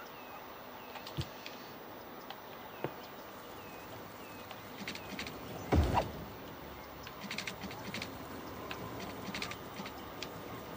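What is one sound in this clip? Short interface clicks and placement thuds sound now and then.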